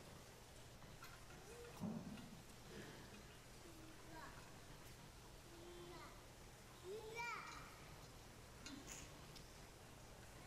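A metal censer's chain clinks softly as it swings.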